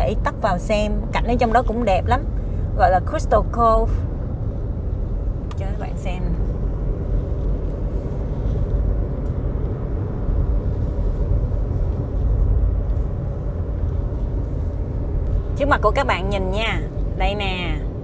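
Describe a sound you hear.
A car's tyres rumble steadily on the road from inside the car.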